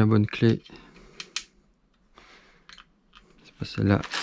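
Small metal parts click as a nut is turned by hand.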